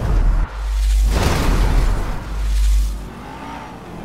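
Car tyres screech loudly on the road.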